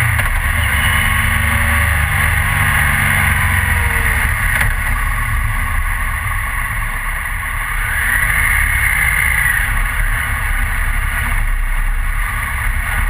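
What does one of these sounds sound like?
Wind roars loudly against a motorcycle rider's helmet.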